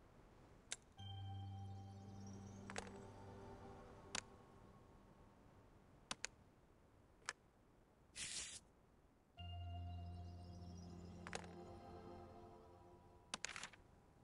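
A bright chime rings out and slowly fades.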